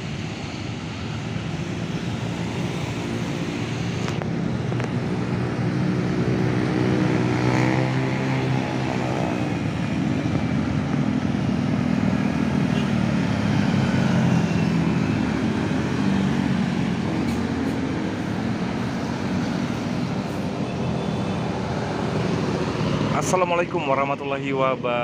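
Traffic rumbles steadily along a busy road outdoors.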